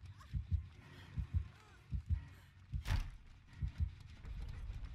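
Quick heavy footsteps thud on a wooden floor.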